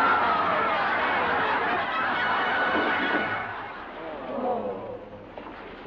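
A large crowd laughs and cheers loudly, then quiets down.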